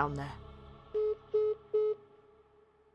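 A phone beeps three times in a row.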